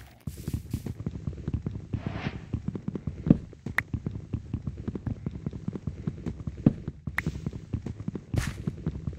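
Rapid dull knocks sound as wood is punched and broken.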